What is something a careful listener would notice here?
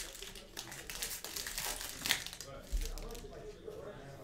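A foil wrapper crinkles and rustles as it is torn open.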